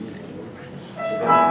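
A piano begins to play.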